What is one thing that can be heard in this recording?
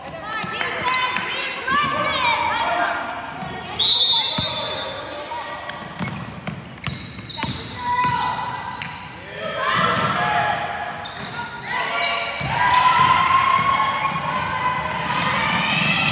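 A basketball thumps as it bounces on the floor.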